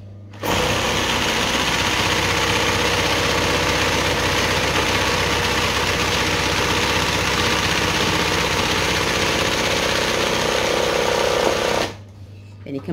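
An embroidery sewing machine stitches fast.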